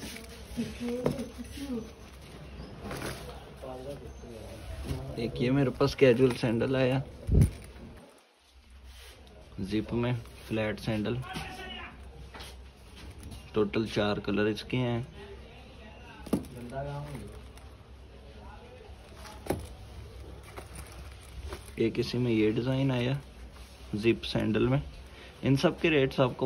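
A hand picks up sandals with soft rustling and tapping.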